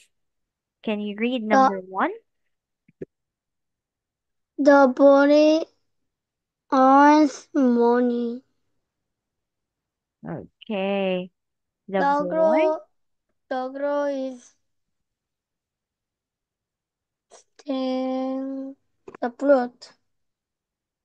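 A woman speaks slowly and clearly over an online call, pausing between phrases.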